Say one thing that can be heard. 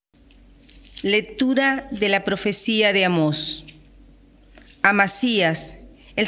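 A middle-aged woman reads aloud calmly into a microphone.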